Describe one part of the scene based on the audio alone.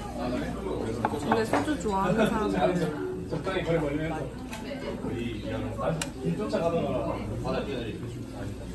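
Men and women chatter and talk nearby.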